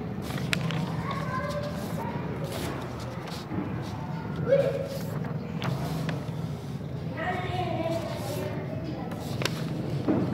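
Paper sheets rustle and flap close by.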